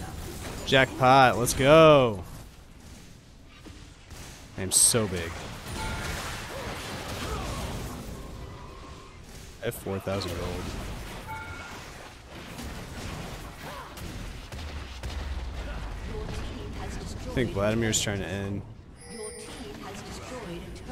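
Magic blasts and zaps crackle in a fantasy battle.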